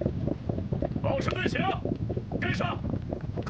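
A young man shouts a command.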